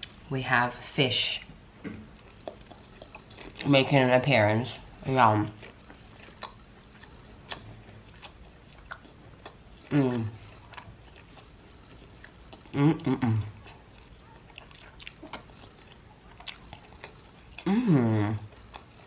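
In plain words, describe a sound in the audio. Food and a leaf wrapper crinkle and rustle softly under fingers.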